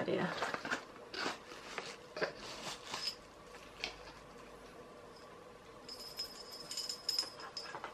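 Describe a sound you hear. Paper rustles and crinkles as a box is unwrapped.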